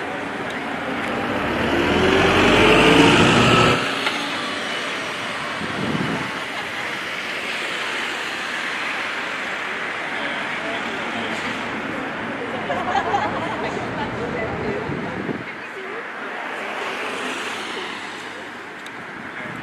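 A crowd of men and women murmur quietly outdoors.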